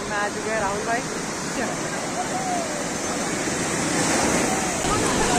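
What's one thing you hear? Waves crash and wash up the shore.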